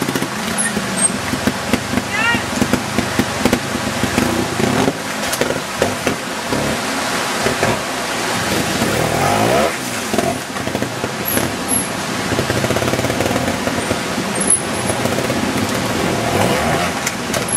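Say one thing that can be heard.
A trials motorcycle engine revs and sputters close by.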